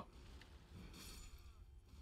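A blade slashes and strikes an enemy.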